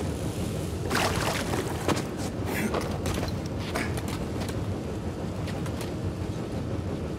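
Leaves rustle as someone climbs through a vine.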